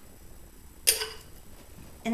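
A metal spoon clinks against a glass bowl.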